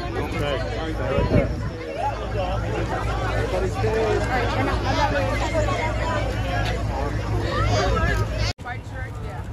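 A crowd of men and women talk over each other nearby.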